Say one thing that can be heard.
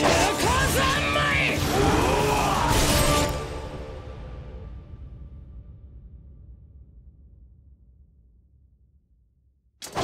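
A loud magical blast roars and slowly fades away.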